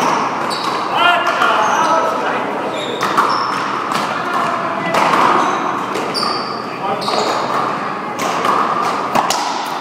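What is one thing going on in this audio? A ball smacks against a wall and racket in a large echoing court.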